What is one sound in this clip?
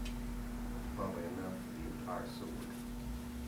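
An elderly man speaks calmly and briefly nearby.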